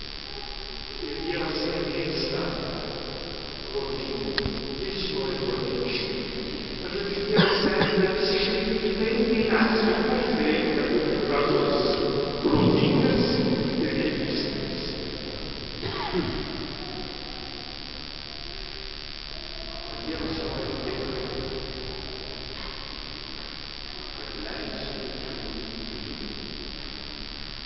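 A congregation sings together in a large, echoing hall.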